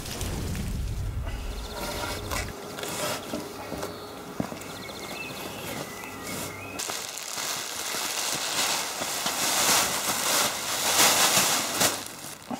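Plastic sheeting rustles and crinkles.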